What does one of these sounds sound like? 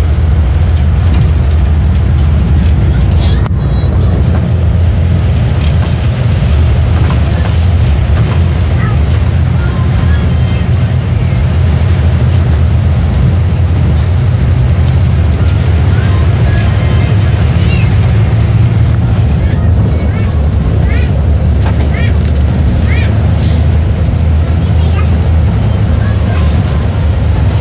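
A bus engine drones steadily from inside the cabin.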